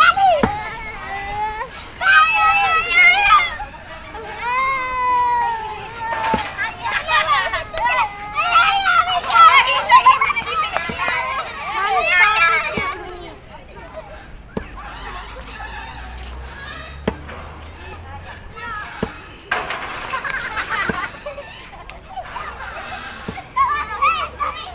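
Young girls talk and shout excitedly nearby.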